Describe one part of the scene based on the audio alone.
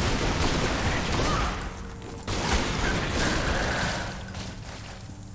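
A giant spider hisses and screeches.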